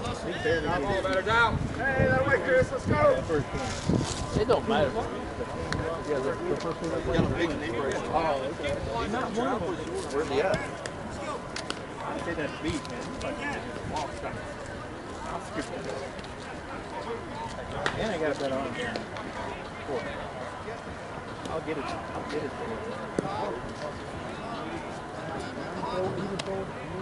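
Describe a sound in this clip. Men shout and call out to each other across an open field outdoors.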